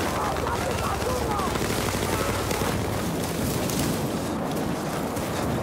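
Footsteps rustle quickly through grass.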